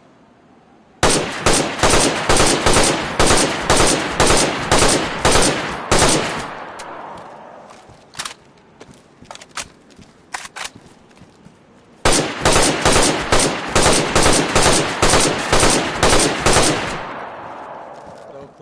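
A rifle fires rapid bursts of shots that echo away.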